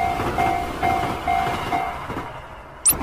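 A railway crossing bell rings in a steady repeating pattern.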